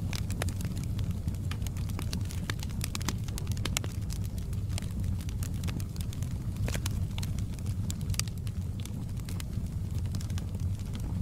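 A fire roars with a low, steady rumble.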